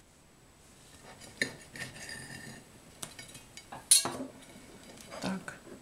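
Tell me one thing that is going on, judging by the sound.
A knife cuts through a soft loaf of bread.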